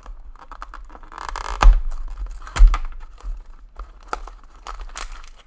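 A cardboard box is torn open.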